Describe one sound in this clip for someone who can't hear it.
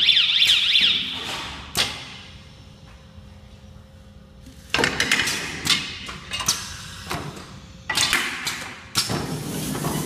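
A winding machine whirs and clatters as it runs.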